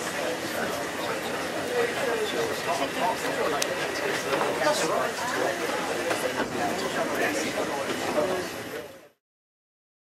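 A passing freight train rumbles close by.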